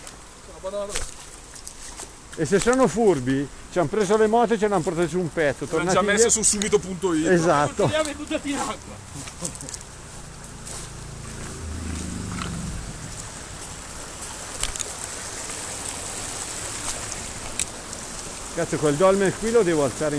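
Shallow water trickles over rocks.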